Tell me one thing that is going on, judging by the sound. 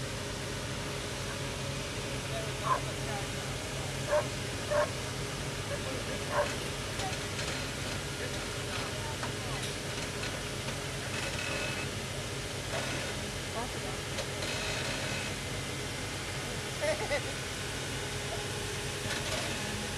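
An engine idles and rumbles low and steady outdoors.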